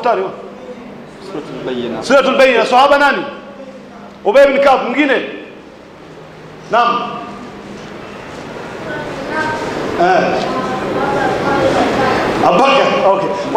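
A man speaks forcefully into a microphone, heard through a loudspeaker.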